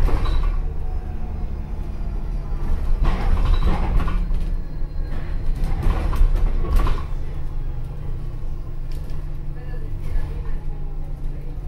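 A bus engine hums and rumbles steadily while driving.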